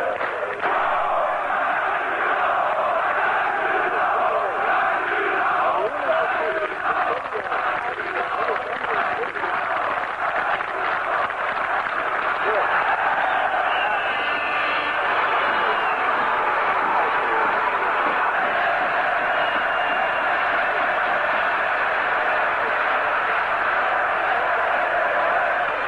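A large crowd roars and cheers in an open stadium.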